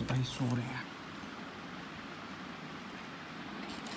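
A plastic spoon scrapes softly against food in a container.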